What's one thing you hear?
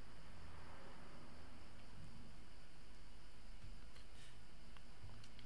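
A young man talks calmly and quietly into a microphone.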